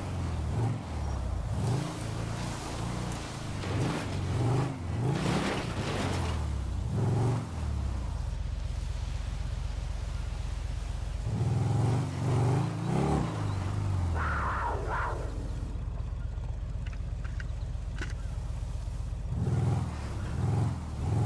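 A motorbike engine revs up and down, rising and falling in pitch.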